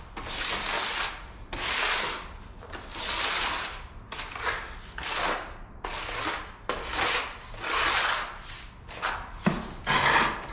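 A trowel scrapes and swishes through wet adhesive in repeated strokes.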